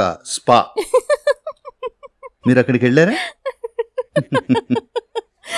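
A young woman laughs heartily into a microphone.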